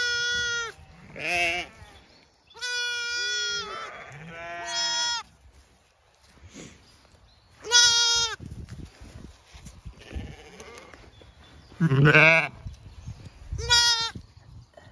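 Young lambs bleat loudly and repeatedly close by.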